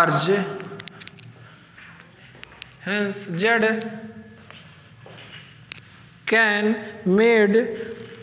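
A young man speaks calmly and clearly nearby, in short phrases with pauses.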